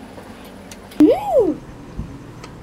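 A young girl hums with pleasure close to a microphone.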